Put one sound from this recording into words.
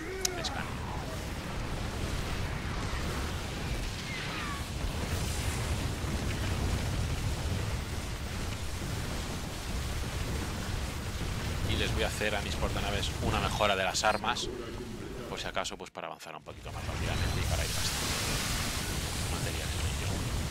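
Video game battle effects of gunfire and explosions play continuously.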